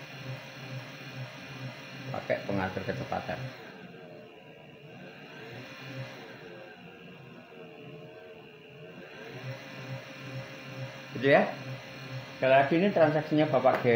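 An electric motor hums, its pitch wavering up and down as its speed is turned.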